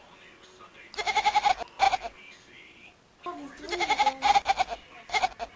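A kitten chatters rapidly in short, high bursts.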